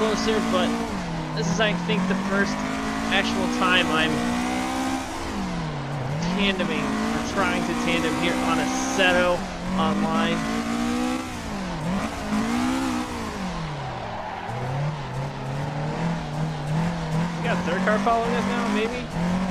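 Tyres squeal while a car slides through corners.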